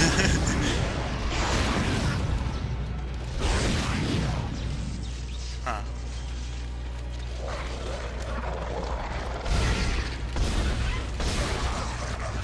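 Gunshots and blasts ring out in a game.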